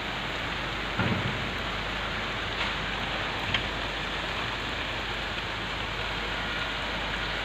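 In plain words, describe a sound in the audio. Wind gusts through tree leaves, rustling them.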